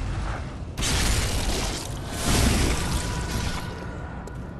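A heavy blade slashes into flesh with a wet splatter.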